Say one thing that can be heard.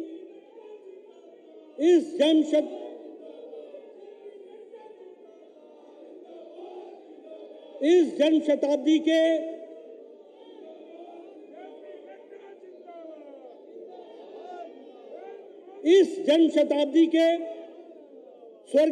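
An older man speaks forcefully into a microphone, his voice carried over loudspeakers with loud emphatic bursts.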